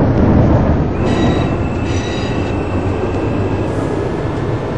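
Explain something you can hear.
A tram's motor whines with a high steady tone.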